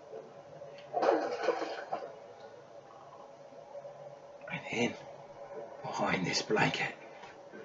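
A young man talks quietly and close by, in short bursts.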